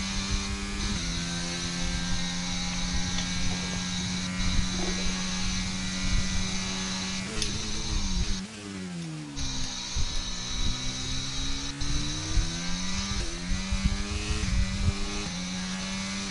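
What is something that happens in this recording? A racing car engine screams at high revs, dropping in pitch while braking and rising again as it speeds up.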